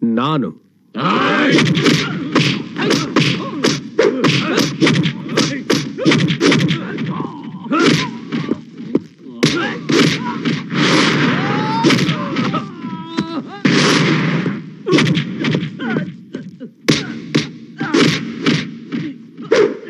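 Punches land with sharp, heavy thuds in quick succession.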